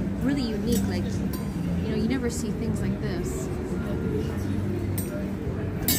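Metal cutlery clinks softly as a hand picks it up.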